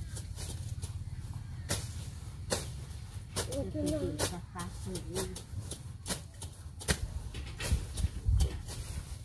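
A hoe chops into grassy soil with repeated sharp strikes.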